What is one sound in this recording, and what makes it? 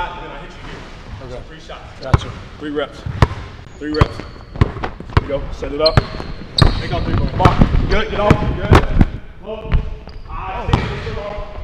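A basketball bounces hard on a wooden floor, echoing in a large hall.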